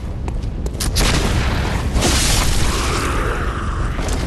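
A blade swings and strikes with a sharp slash.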